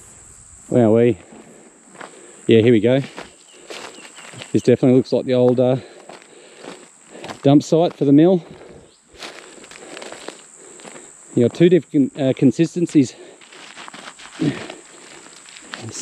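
Footsteps crunch on dry dirt and gravel.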